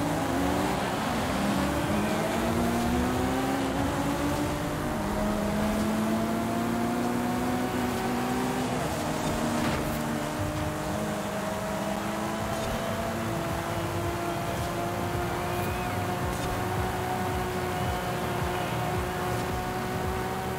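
A sports car engine revs hard, climbing in pitch through the gears.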